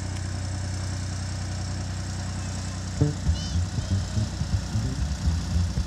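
A narrowboat engine chugs steadily nearby.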